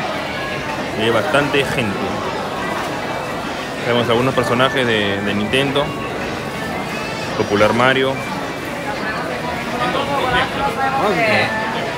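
A crowd murmurs and chatters in a busy indoor space.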